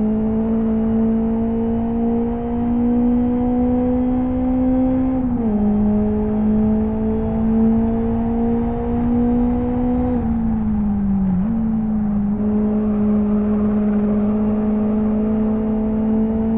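A racing car engine drones steadily, its pitch rising slowly and dropping at each gear change.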